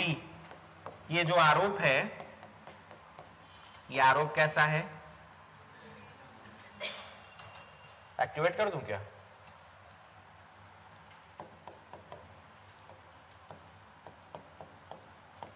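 A pen taps and scratches lightly on a board.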